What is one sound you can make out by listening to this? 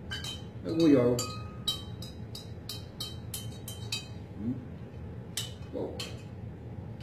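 Small glasses clink and tap against each other.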